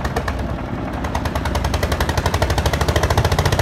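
A cement mixer drum churns and rumbles steadily.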